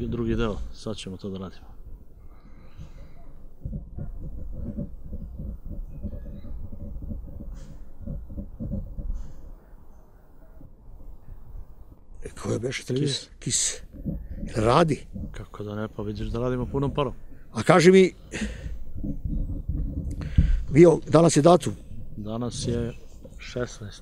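An elderly man speaks calmly into a nearby microphone.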